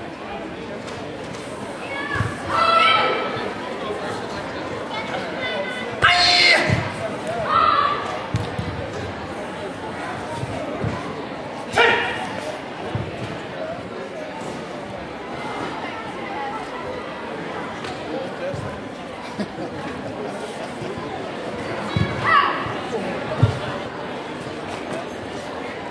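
Bare feet thump and slide on a mat.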